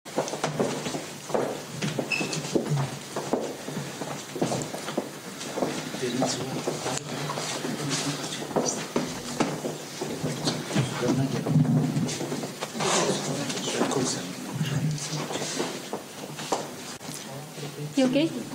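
Several people chatter and murmur in a room.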